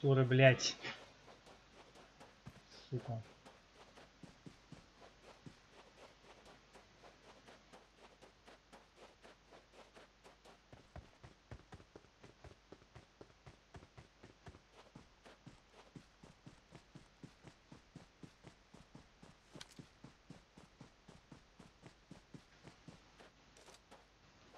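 Quick footsteps run steadily over dry ground.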